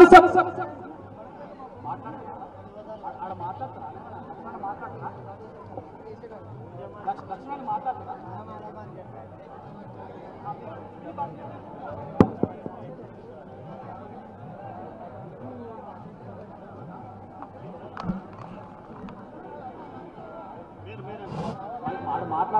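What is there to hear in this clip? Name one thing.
A large crowd of men cheers and chatters outdoors.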